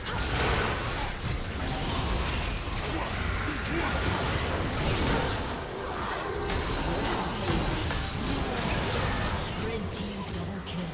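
Magical spells crackle and burst in a fast, fierce fight.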